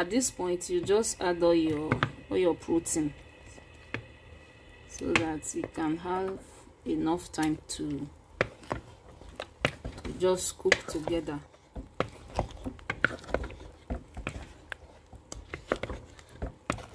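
Thick stew bubbles and pops as it boils.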